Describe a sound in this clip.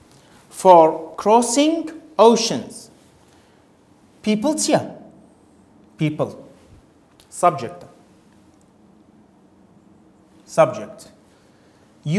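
A man speaks with animation in short bursts, heard close through a microphone.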